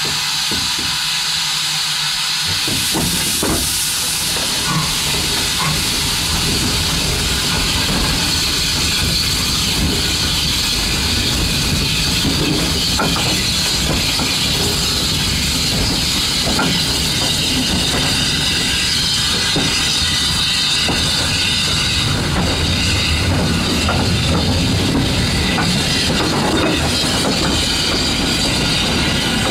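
A small steam locomotive chugs along close by.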